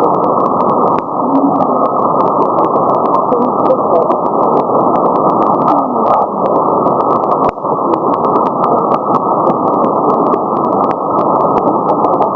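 A radio receiver hisses with static, crackling with sharp clicks.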